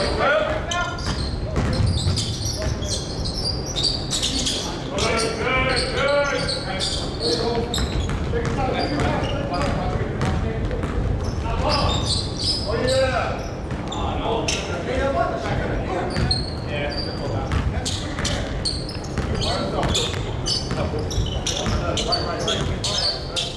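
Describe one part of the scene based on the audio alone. Men shout and call out to each other in an echoing gym.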